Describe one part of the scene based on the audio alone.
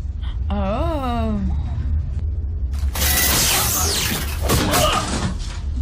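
A young woman gasps and exclaims in surprise close by.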